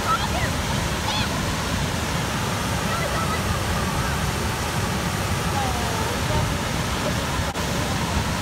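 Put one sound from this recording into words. Water rushes and roars loudly over rocks and a dam spillway close by.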